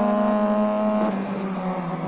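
Tyres screech on the track through a corner.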